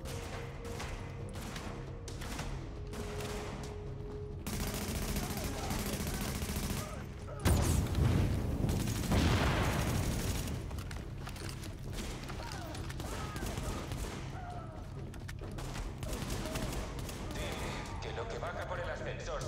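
Automatic gunfire rattles in short bursts.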